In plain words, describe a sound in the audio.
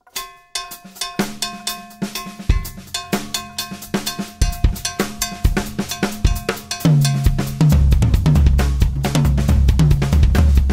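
A snare drum is struck in quick, rhythmic beats.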